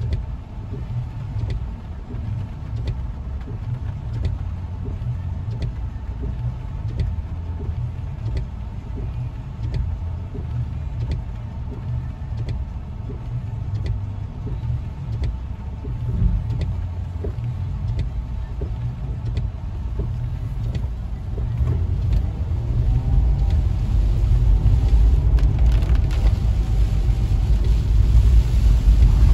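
Heavy rain drums steadily on a car's roof and windshield.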